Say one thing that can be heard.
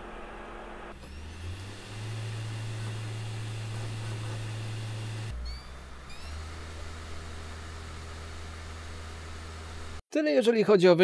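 A disc drive spins inside a games console with a steady low hum and faint whine.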